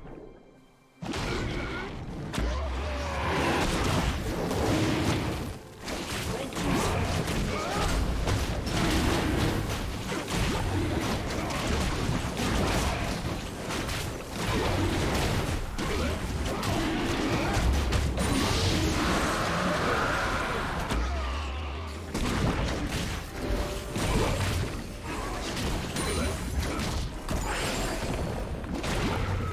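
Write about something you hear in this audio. Fantasy battle sound effects clash, crackle and boom.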